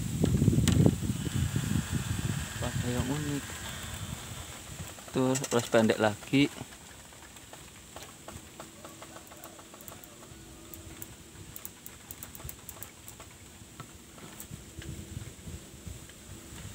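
Bamboo leaves rustle softly in a breeze.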